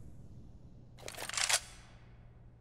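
A rifle is drawn with a metallic rattle and click.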